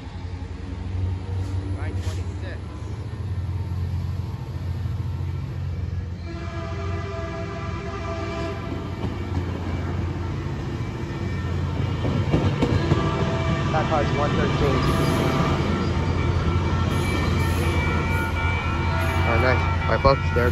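A train rumbles past close by, wheels clattering on the rails.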